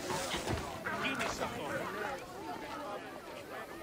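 A crowd of men and women murmurs and chatters.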